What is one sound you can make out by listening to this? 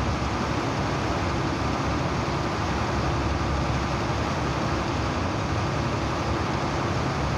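Water splashes and rushes against a ship's hull.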